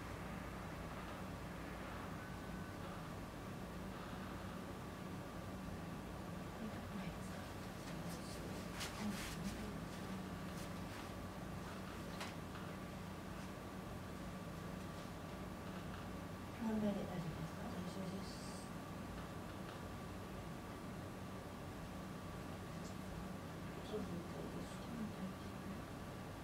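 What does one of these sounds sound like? Hands rub and press over a fabric blanket.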